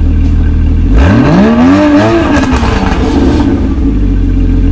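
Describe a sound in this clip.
A sports car engine revs sharply, then drops back.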